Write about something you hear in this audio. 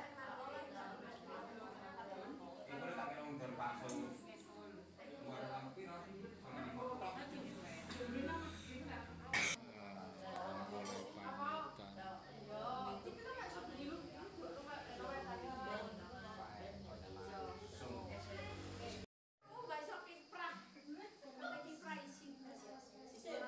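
Several women and men chat and talk over one another close by.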